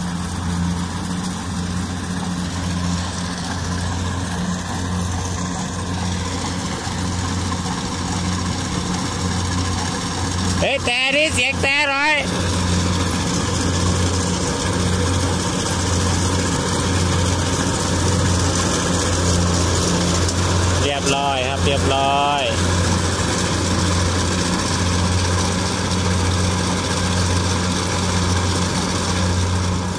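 A combine harvester engine drones and rumbles steadily close by.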